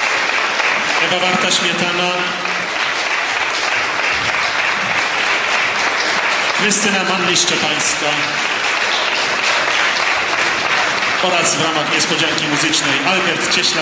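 A man sings through a microphone in short phrases.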